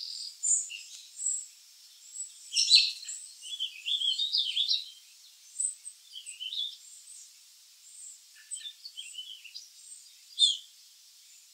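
A robin chirps in quick, high bursts close by.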